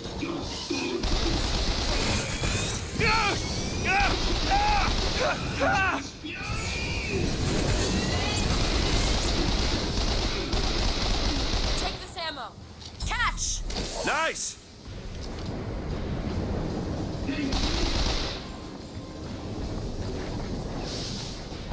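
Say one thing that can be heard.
Fire roars and explosions boom.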